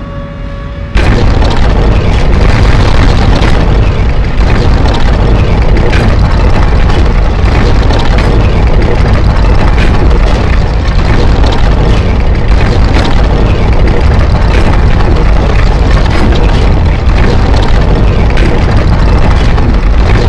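A heavy stone mechanism grinds and rumbles as it turns.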